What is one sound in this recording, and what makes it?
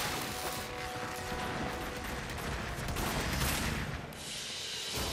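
Weapons fire and energy blasts crackle loudly in a battle.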